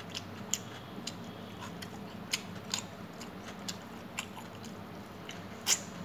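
A person chews food close up.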